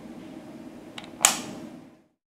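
A light switch clicks once.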